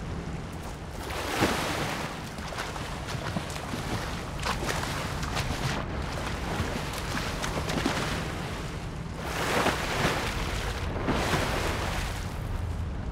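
Water splashes and swishes as a game character swims.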